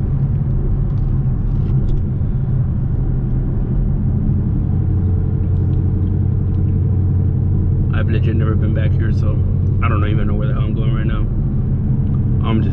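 A car engine hums steadily from inside the car as it drives along a road.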